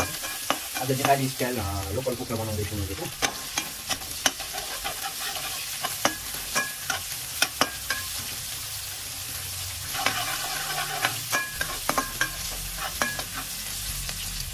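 A metal spatula scrapes and clinks against a metal wok.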